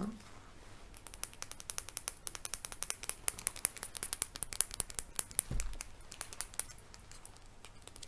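A plastic tube clicks and rattles in a woman's hands.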